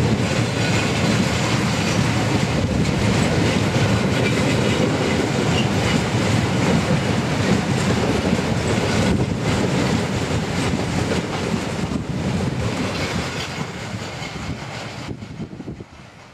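A long freight train rumbles and clatters past close by, then fades away.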